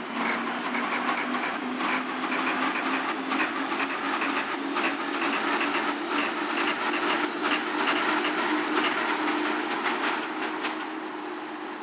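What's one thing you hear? A train rumbles and clatters along the tracks as it pulls away.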